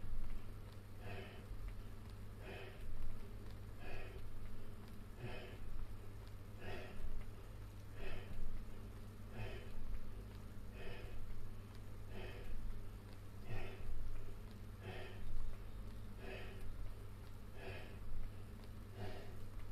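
A man grunts and exhales rhythmically with each squat, close by.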